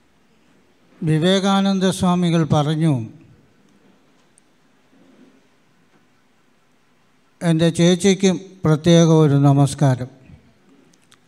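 An elderly man chants melodically into a microphone, heard through a loudspeaker in a room.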